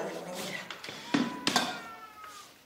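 A metal pot clanks down onto a table.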